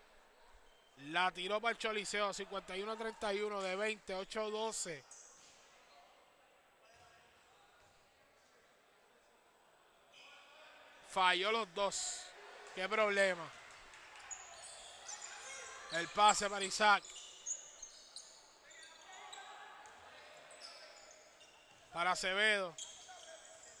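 Sneakers squeak sharply on a court in a large echoing hall.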